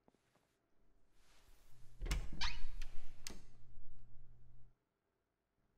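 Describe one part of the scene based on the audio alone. A door creaks open.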